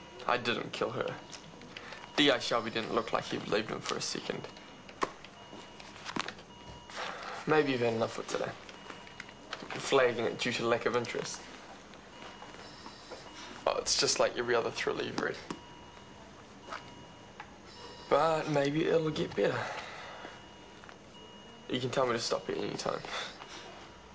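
A young man reads aloud calmly, close by, in short phrases with pauses.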